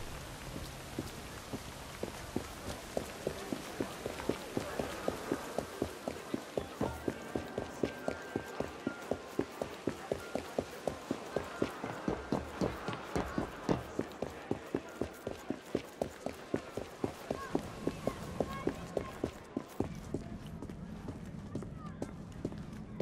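Quick footsteps run steadily over hard stone.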